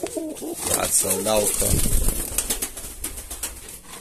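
A pigeon flaps its wings hard close by.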